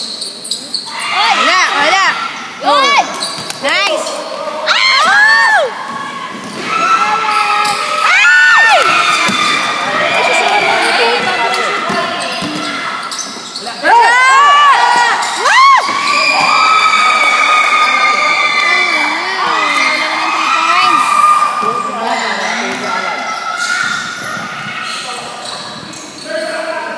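Young men shout and call out in an echoing hall.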